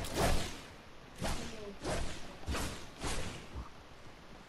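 A pickaxe strikes in a video game.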